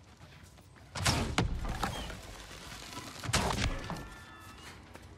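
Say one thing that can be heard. Loud explosions boom close by.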